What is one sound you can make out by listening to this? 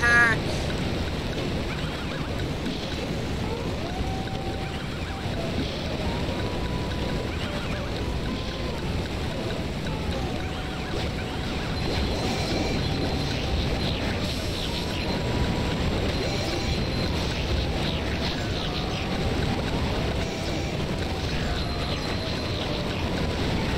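Upbeat video game music plays steadily.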